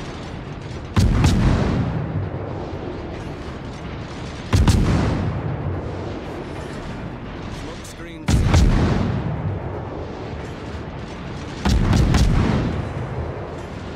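Heavy naval guns fire in booming salvos that rumble away.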